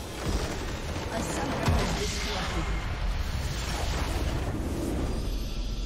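Game spells crackle and explode in a loud battle.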